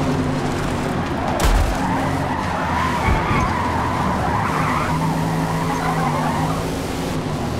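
Tyres screech while a car slides around a bend.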